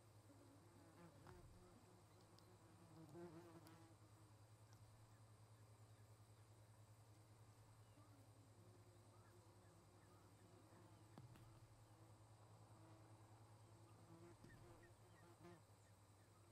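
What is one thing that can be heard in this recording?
A young osprey chirps and peeps close by.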